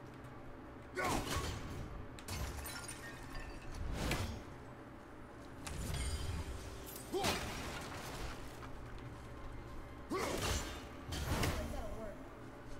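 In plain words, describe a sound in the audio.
An axe strikes with heavy thuds.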